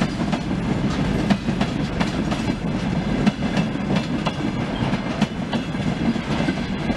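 Freight wagon wheels clatter over rail joints.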